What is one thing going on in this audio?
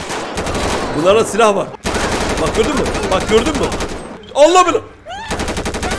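A man shouts excitedly close to a microphone.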